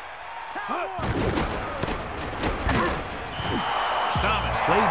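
Football players crash together with heavy thuds.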